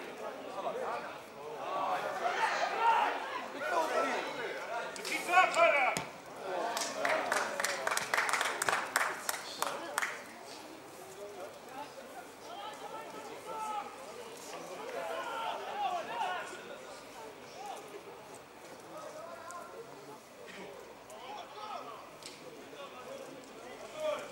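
Young men shout to each other across an open pitch, some distance away.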